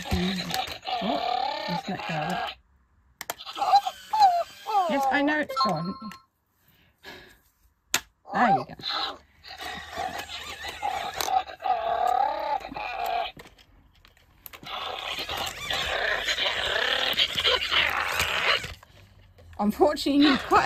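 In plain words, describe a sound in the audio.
A toy robot dog plays cheerful electronic sounds and tunes through a small speaker.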